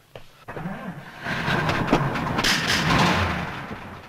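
A bus engine rumbles.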